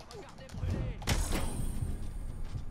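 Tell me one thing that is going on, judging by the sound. A heavy punch lands with a dull thud.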